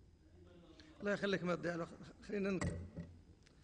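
A middle-aged man speaks with emphasis into a microphone.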